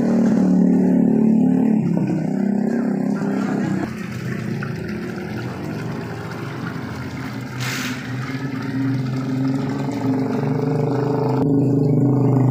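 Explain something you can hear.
A stream of water splashes steadily into a tank.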